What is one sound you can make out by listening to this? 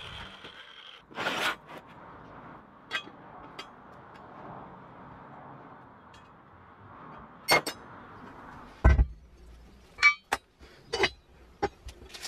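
Metal parts clink and tap against each other.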